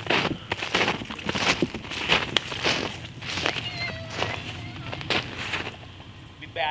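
Footsteps crunch through snow and dry leaves.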